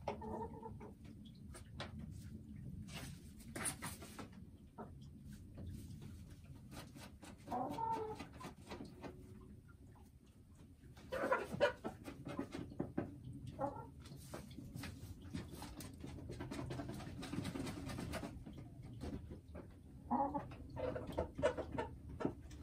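A hen clucks softly close by.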